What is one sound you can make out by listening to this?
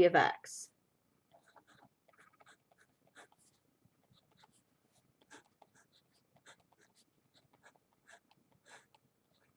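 A marker squeaks and scratches softly on paper.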